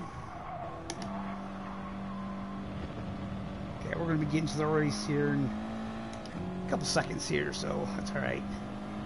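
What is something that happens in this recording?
A racing car engine drones steadily at high speed.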